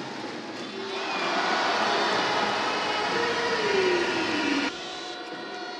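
A crowd whistles loudly.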